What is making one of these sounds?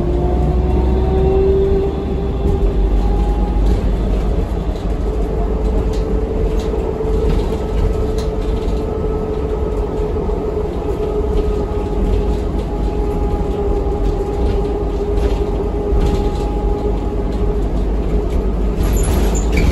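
The bus rattles and clatters as it rolls along.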